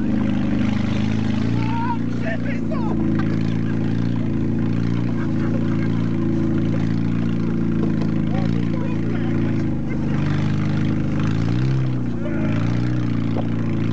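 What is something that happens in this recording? A small engine drones loudly up close and revs briefly.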